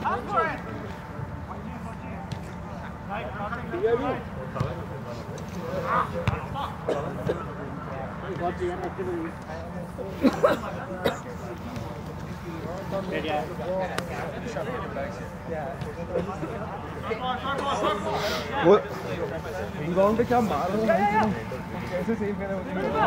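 Men shout and call out to each other across an open field.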